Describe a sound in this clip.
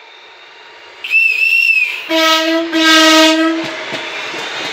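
A train horn sounds loudly in a few blasts.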